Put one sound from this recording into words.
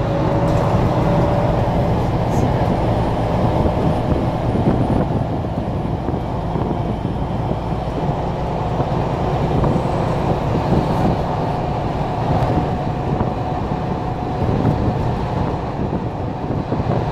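Tyres roll on the road with a constant rumble.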